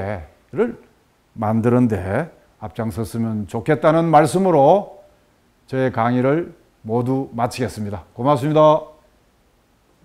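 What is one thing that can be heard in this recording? A middle-aged man lectures calmly and clearly into a microphone.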